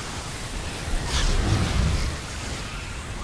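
A deep explosion booms.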